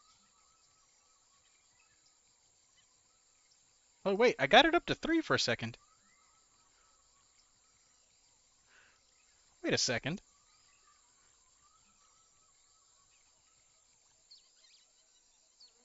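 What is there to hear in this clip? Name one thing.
A fishing reel whirs as its line is wound in.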